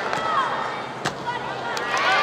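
A gymnast lands on a balance beam with a sharp thud.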